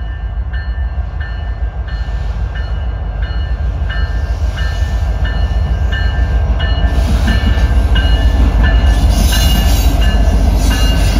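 A diesel locomotive engine rumbles deeply and grows louder as it approaches.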